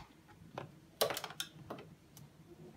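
A button clicks.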